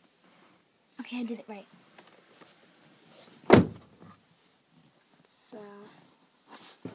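A young girl speaks softly, close by.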